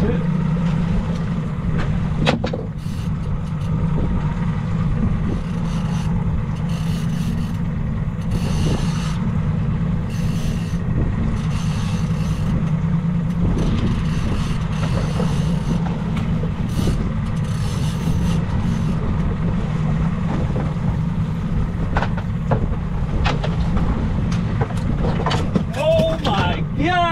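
A boat engine rumbles steadily throughout.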